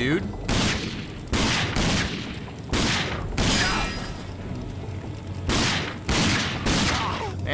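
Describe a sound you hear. Pistol shots ring out one after another, echoing in an enclosed space.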